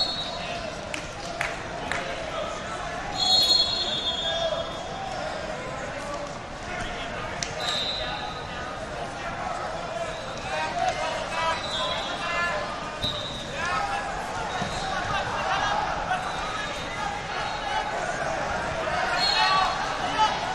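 Coaches and spectators yell encouragement.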